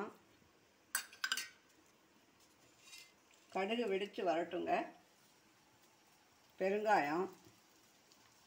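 Mustard seeds sizzle and pop in hot oil in a metal pan.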